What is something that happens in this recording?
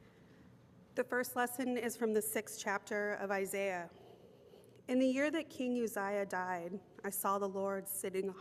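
A middle-aged woman speaks clearly into a handheld microphone.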